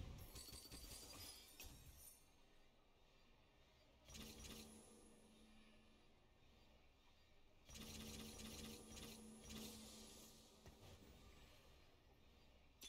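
Game sound effects of magical attacks crackle and chime.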